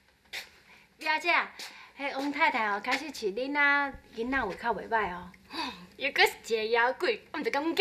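Two young women talk with each other in a room.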